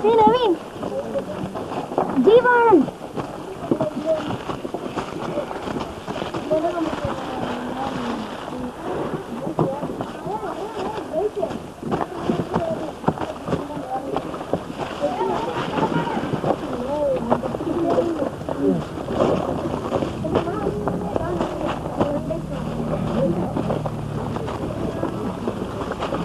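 Several men talk and call out close by.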